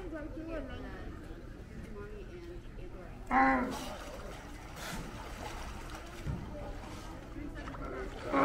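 Many sea lions bark and groan loudly nearby.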